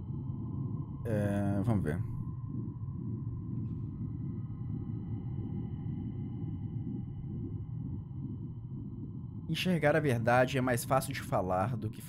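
A young man talks briefly and with animation into a close microphone.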